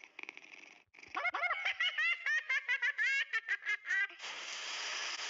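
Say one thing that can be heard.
A cartoon cat chatters in a high, squeaky voice.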